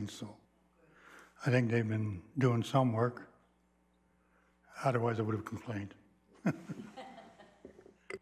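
A man speaks steadily through a microphone, heard over a loudspeaker system.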